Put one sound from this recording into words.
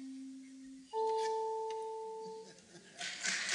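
A flute plays a single held note.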